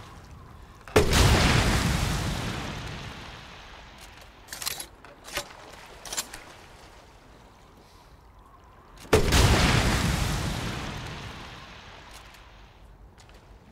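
A shotgun fires with a loud blast that echoes and slowly fades.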